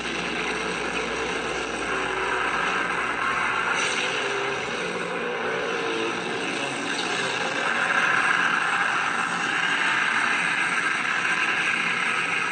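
Energy blasts roar and whoosh from a tablet's small speaker.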